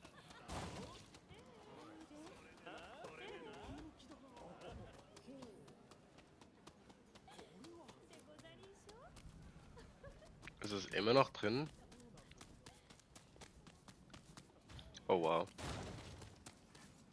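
Soft bare footsteps patter quickly on the ground.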